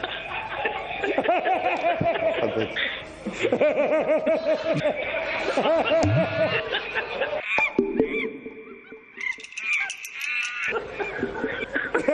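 A middle-aged man laughs heartily.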